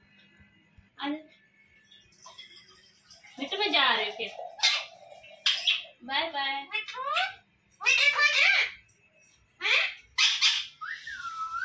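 A young woman talks and laughs playfully nearby.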